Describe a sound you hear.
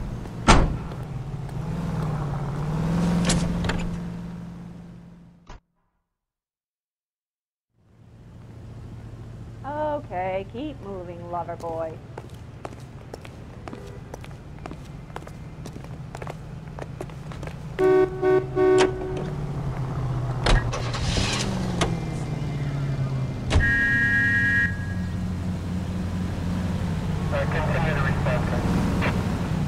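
A car engine hums steadily at idle.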